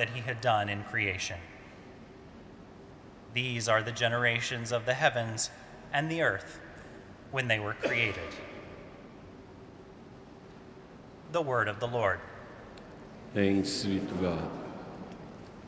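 A man reads aloud calmly through a microphone in a large echoing hall.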